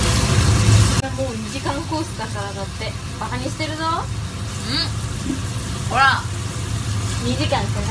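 Young women talk and laugh close by.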